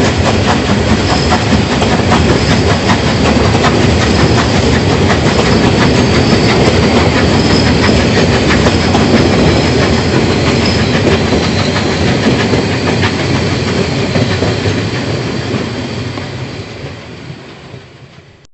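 A steam locomotive chuffs loudly and steadily, then fades into the distance.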